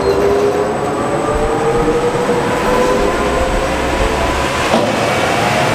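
An electric car's motor whines steadily as its wheels spin on rollers.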